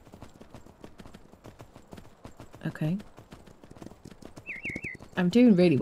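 A horse's hooves thud at a quick, steady gallop over soft ground.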